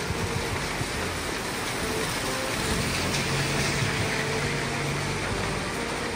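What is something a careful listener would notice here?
A van drives past on the wet road with a swish of tyres.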